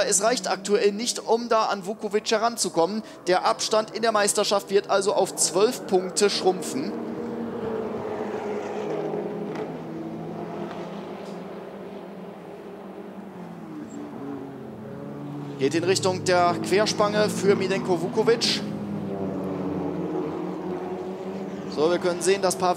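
Racing car engines roar at high revs as cars speed past.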